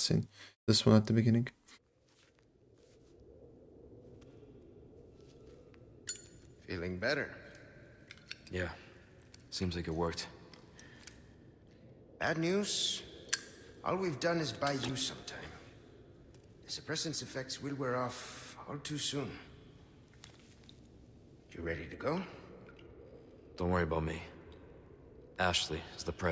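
A young man talks close into a headset microphone.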